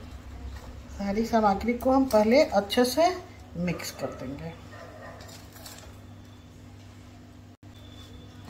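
A spoon scrapes and stirs in a metal bowl.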